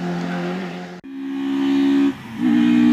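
A third rally car approaches at full throttle on tarmac.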